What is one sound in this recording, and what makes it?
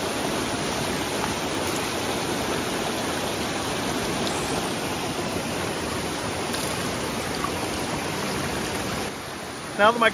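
Water pours from a pan into a bucket of gravel.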